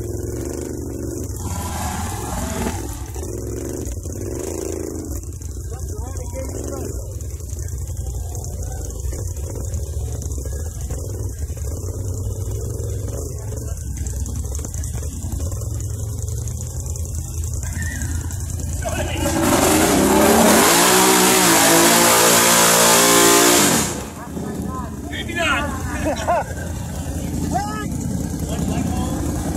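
A big-bore ATV engine rumbles at low revs in thick mud.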